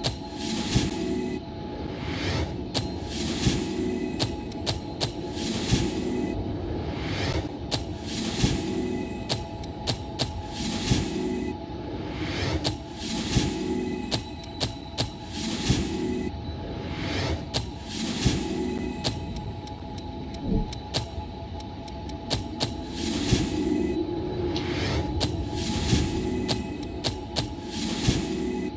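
Game menu chimes and clicks ring out as options are confirmed.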